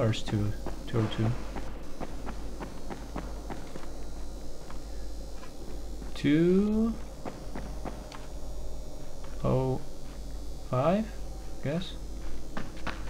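A young man speaks calmly and briefly into a close microphone.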